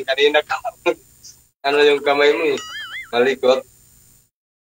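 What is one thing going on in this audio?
A man speaks with animation into a microphone, close up.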